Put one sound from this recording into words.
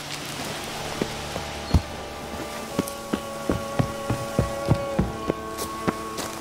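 Footsteps crunch on rough ground at a steady walking pace.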